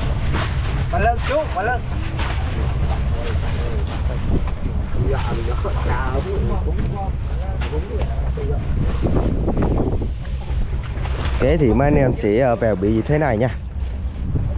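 Men talk nearby over the engine.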